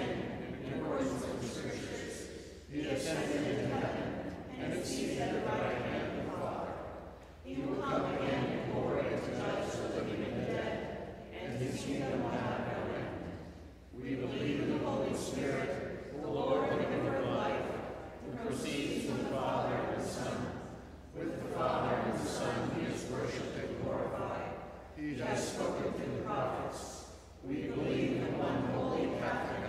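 A congregation of men and women recites together in unison, in phrases with short pauses, in a large echoing hall.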